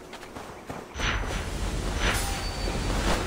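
A heavy blow strikes and shatters a brittle object with a rushing burst.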